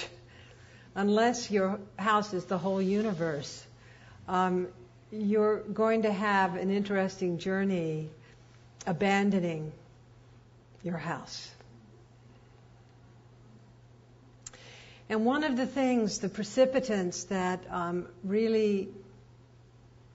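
An elderly woman speaks calmly and thoughtfully into a close microphone, with pauses.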